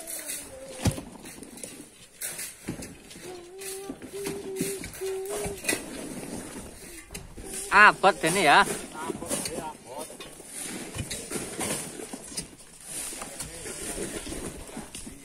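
A tool scrapes and digs into loose gravelly earth.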